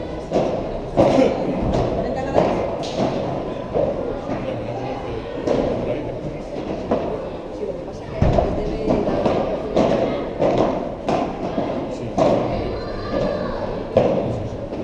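A ball bounces on the court and off the glass walls.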